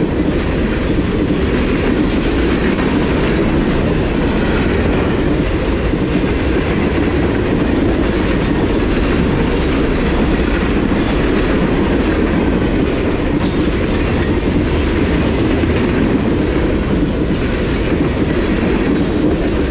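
Steel wheels click and clatter over rail joints.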